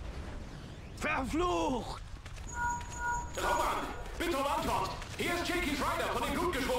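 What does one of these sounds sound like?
A man speaks calmly and gruffly.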